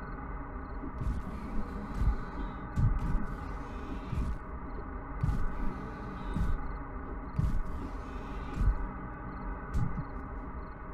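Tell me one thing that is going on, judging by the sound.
Heavy blows thud against a body again and again.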